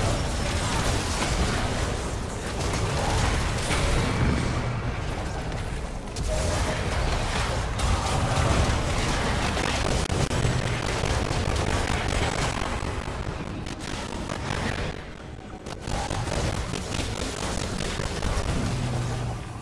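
Video game spell and combat sound effects crackle and whoosh.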